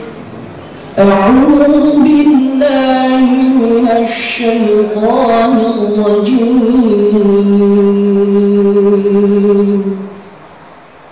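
A man chants in long, drawn-out notes through a loudspeaker, echoing in a large hall.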